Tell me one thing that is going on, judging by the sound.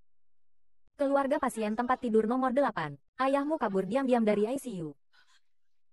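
A young woman speaks quickly and with agitation, close by.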